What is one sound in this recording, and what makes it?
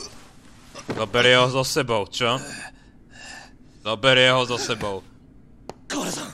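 A man cries out in pain.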